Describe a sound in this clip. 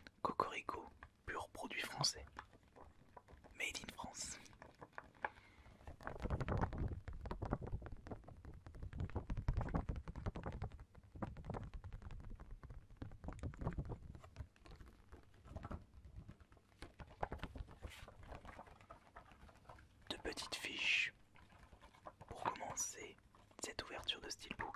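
Paper rustles and crinkles as a booklet is handled.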